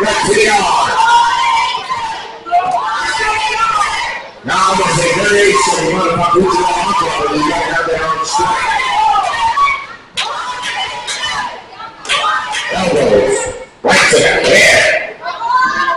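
A crowd of spectators shouts and cheers loudly nearby in an echoing hall.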